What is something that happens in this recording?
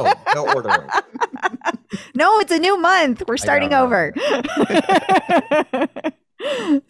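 A middle-aged man laughs over an online call.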